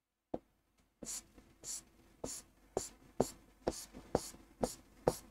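A pen taps and scratches on a board.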